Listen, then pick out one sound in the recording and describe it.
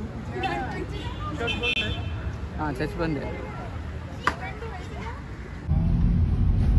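Children talk and call out nearby outdoors.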